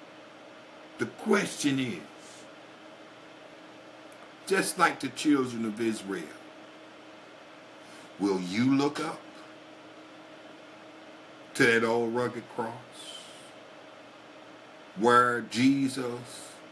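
A middle-aged man speaks calmly and close up, in short phrases with pauses.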